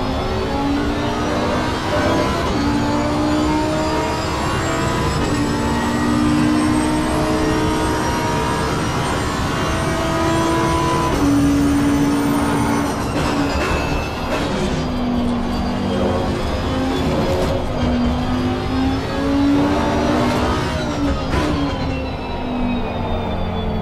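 A racing car engine roars at high revs, rising in pitch and dropping with each gear change.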